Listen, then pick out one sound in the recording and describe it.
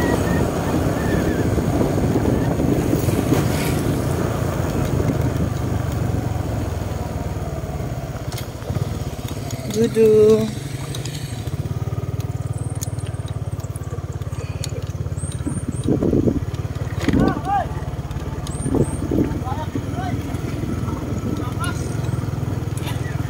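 A motorbike engine hums steadily up close.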